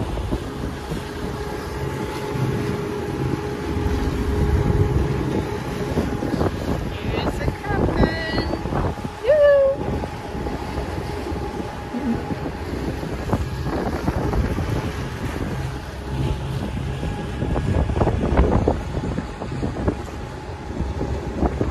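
Water splashes and rushes past a moving boat.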